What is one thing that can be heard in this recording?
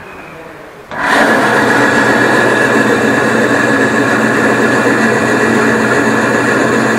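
A band saw runs with a steady whirring hum.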